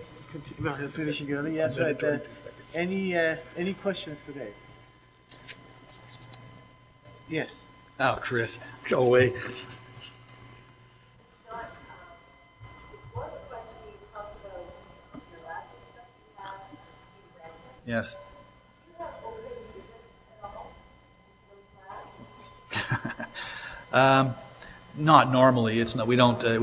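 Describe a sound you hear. A middle-aged man speaks calmly into a microphone, heard over a loudspeaker in a large room.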